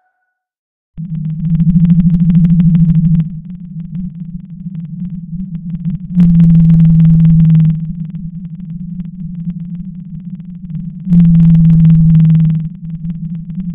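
A whale calls with long, deep moans, again and again.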